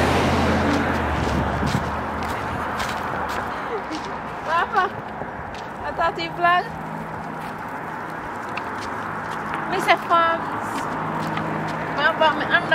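Stroller wheels roll and rattle along a pavement outdoors.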